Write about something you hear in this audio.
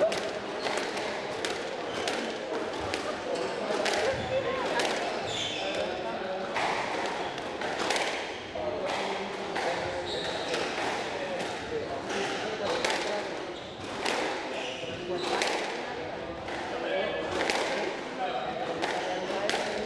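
Rubber-soled shoes squeak on a wooden floor.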